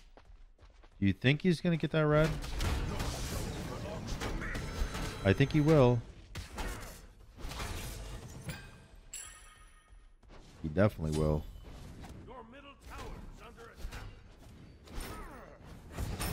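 A young man talks animatedly into a microphone.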